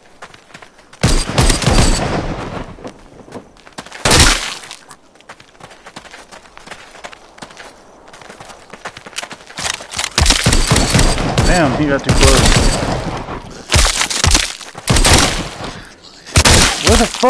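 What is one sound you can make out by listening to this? Gunshots ring out in loud bursts.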